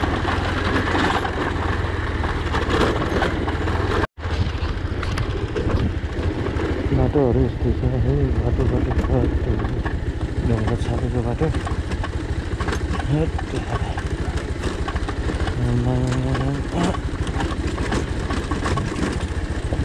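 Tyres crunch and rattle over a rough stony track.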